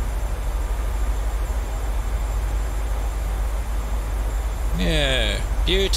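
Jet engines drone with a low, steady rumble.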